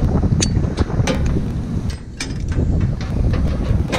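A metal carabiner clinks against tower steel.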